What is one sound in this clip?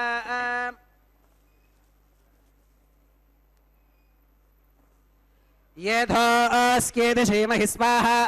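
Men chant in a steady, sung tone through a microphone.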